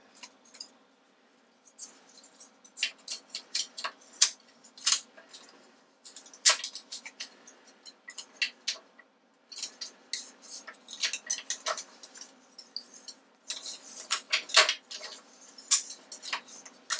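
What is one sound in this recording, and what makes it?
Metal parts click and clink as hands fit them onto a small machine.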